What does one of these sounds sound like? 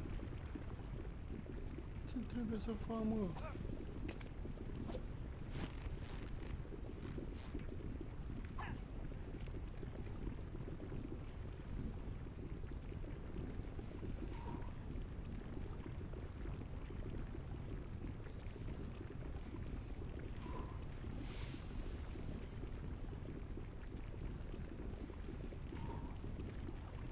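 Fire roars with a low, steady rumble.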